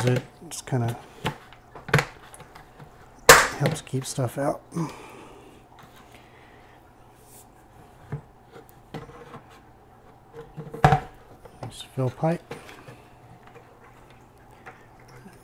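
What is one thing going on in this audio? Plastic parts knock and clatter against a plastic bucket.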